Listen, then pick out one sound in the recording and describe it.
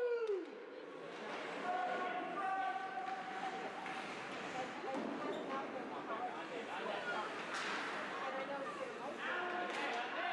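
Spectators chatter nearby.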